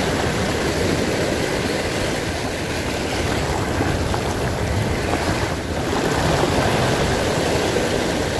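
Small waves wash and splash against rocks close by.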